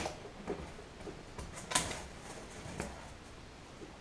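Cardboard scrapes as a box is handled.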